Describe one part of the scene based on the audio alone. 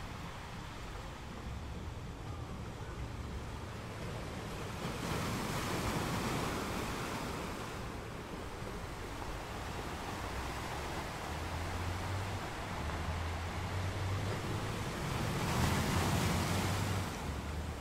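Surf washes and hisses over a rocky shore.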